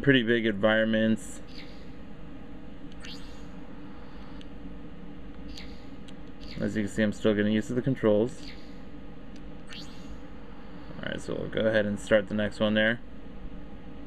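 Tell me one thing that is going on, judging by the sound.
Short electronic tones play from a small game speaker.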